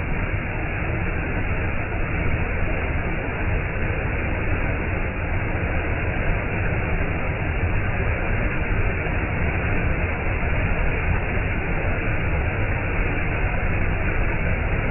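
A waterfall roars steadily as water rushes over rocks close by.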